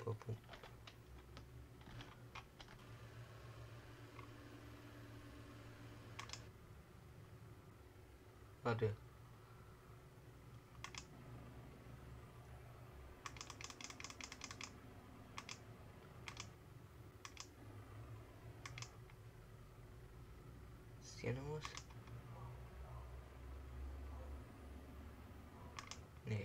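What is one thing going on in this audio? Buttons click sharply on a control panel, again and again.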